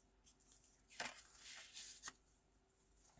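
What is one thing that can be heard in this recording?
Sheets of paper slide and rustle on a table.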